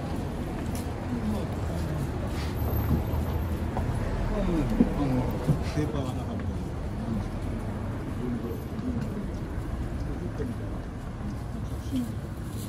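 Men and women passing by talk quietly nearby.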